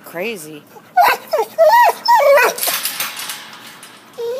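A dog barks loudly nearby.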